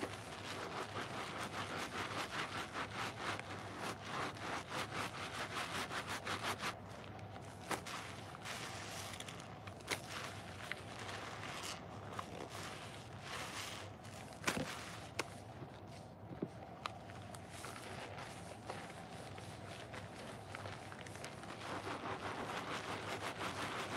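Soapy sponges squelch and squish as they are squeezed.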